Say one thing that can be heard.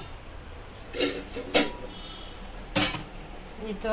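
Metal dishes clink and clatter.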